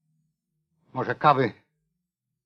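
A man speaks briefly, close by.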